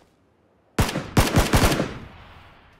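Several gunshots crack in quick succession and echo away.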